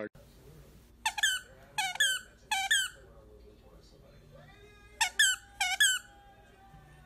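A dog whines in short high cries.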